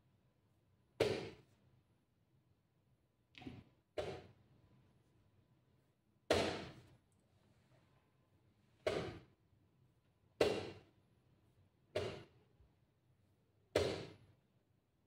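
Chess pieces clack down on a wooden board in quick turns.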